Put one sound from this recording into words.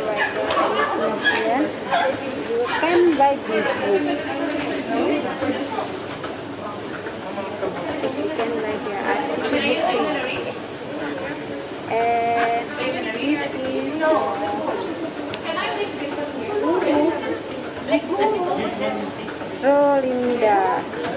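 A young woman talks close by in a lively way.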